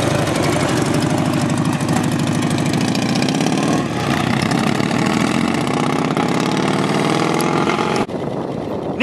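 An old motorcycle engine chugs loudly and pulls away.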